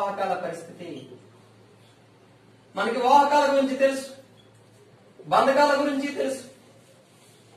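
A young man speaks clearly and calmly, close by.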